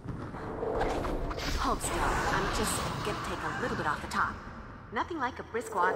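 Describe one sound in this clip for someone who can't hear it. A magical blast crackles and whooshes.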